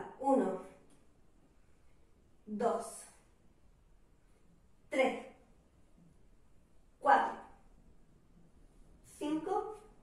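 A young woman speaks in short bursts, close by, at even intervals.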